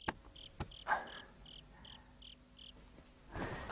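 Insects chirp in a steady rhythm outdoors at night.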